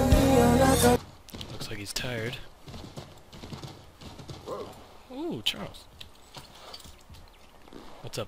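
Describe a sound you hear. Hooves crunch on snow at a steady trot.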